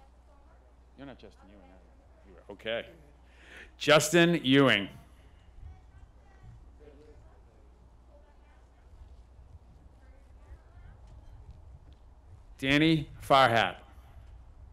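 A man reads out names through a loudspeaker, echoing in a large open space.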